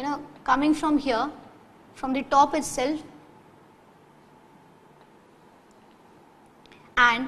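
A woman speaks clearly, explaining in a teaching tone, close to a microphone.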